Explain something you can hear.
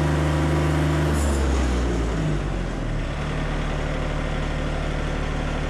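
A diesel engine on a sawmill runs with a steady low rumble, its pitch dropping partway through.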